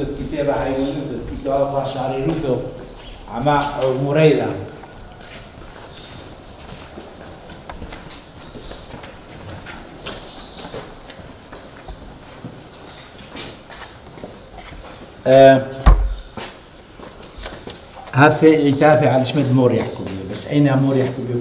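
An elderly man speaks calmly close by.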